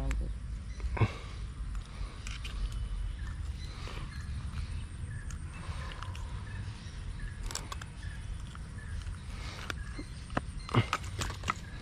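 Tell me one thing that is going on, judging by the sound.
Metal pliers click and clink against a fishing hook.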